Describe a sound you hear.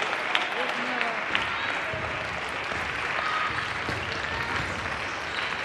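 The murmur of a crowd echoes in a large hall.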